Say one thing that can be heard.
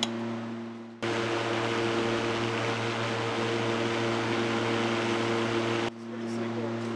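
A power unit hums and whirs steadily outdoors.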